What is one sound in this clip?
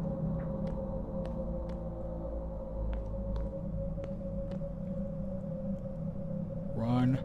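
Heavy footsteps thud slowly on a hard floor.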